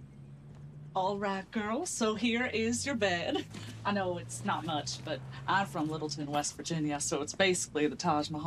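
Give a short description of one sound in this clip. A young woman talks and laughs cheerfully nearby.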